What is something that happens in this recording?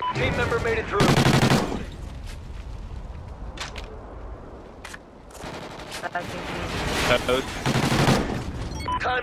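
Automatic gunfire rattles in short rapid bursts.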